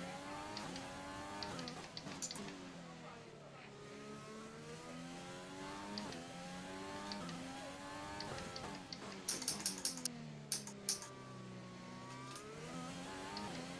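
A racing car engine screams, rising and dropping in pitch as it shifts gears.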